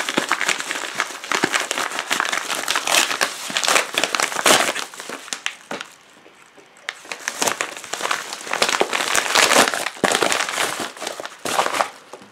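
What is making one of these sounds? Paper tears as an envelope is ripped open.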